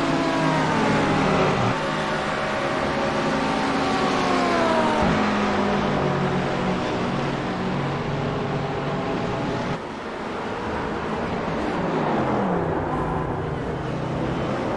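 Racing car engines roar and whine as the cars speed by, rising and falling in pitch.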